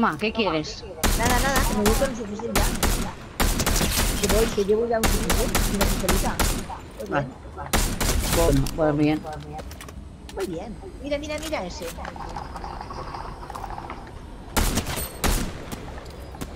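A rifle fires sharp shots in a game.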